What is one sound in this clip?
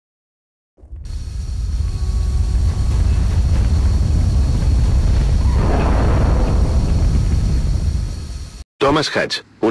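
An aircraft's engines roar as it hovers and sets down.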